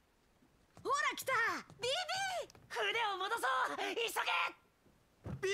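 A young woman speaks excitedly.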